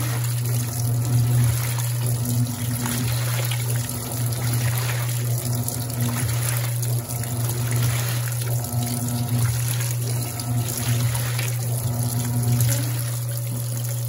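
Water and clothes slosh back and forth in a washing machine.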